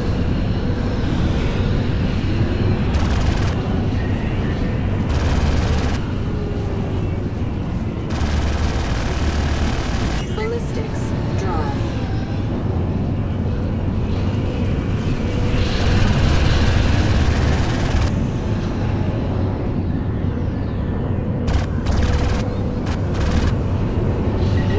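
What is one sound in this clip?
A spacecraft engine rumbles steadily with a deep hum.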